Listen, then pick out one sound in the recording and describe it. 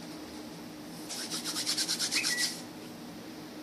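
Hands rub over crackling paper.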